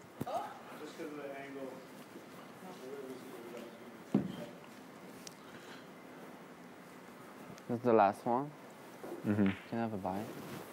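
A young man talks close by, softly at first and then in loud, lively bursts.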